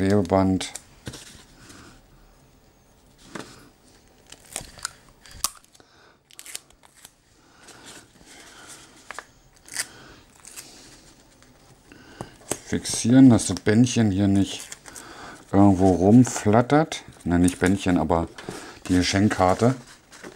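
Wrapping paper rustles and crinkles under a man's hands.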